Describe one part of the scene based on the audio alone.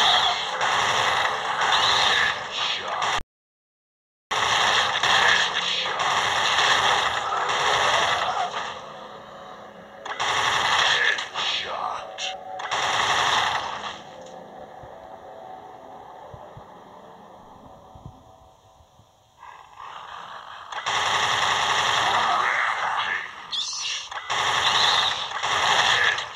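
A rapid-fire machine gun shoots in long, roaring bursts.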